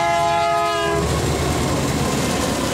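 Train wheels roar and clatter along the rails close by.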